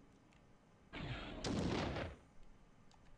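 A game menu opens with a short whooshing sound.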